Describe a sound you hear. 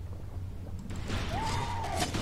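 An explosion bursts with a loud bubbling roar.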